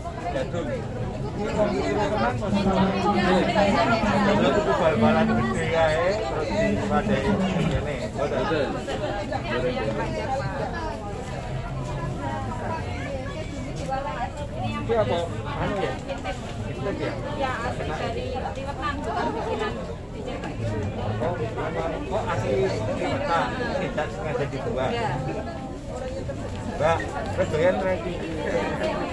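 A crowd murmurs all around.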